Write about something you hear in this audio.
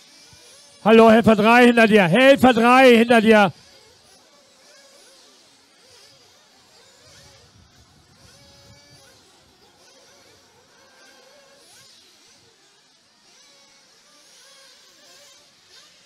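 Small model race cars whine faintly in the distance.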